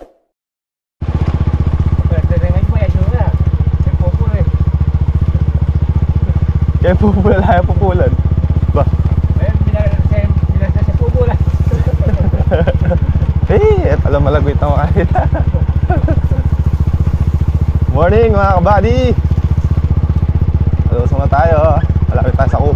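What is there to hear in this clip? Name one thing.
A motorcycle engine hums steadily while riding along a bumpy dirt track.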